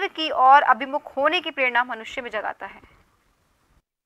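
A middle-aged woman speaks with animation into a microphone over loudspeakers.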